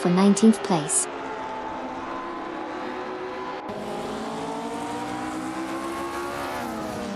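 A racing car engine roars and revs, rising in pitch.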